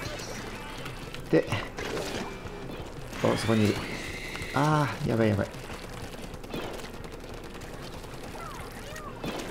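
Game ink sprays and splatters with wet splashing sounds.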